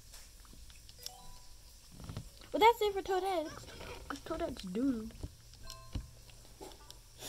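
A handheld game console plays short electronic menu beeps through its small speaker.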